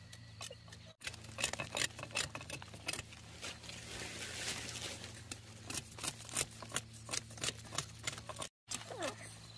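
A knife scrapes and chops the bark off a stalk of sugarcane.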